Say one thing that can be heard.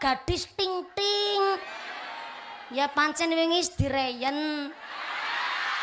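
A young woman sings loudly into a microphone over loudspeakers.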